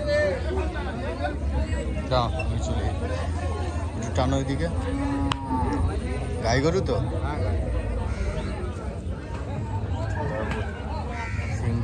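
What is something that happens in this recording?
A crowd of men talk and call out nearby, outdoors.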